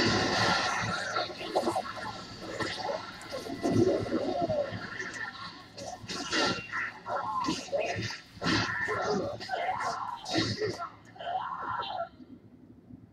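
Swords clash and magic blasts crackle in a fierce fight.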